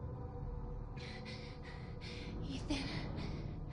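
A young woman speaks softly and hesitantly.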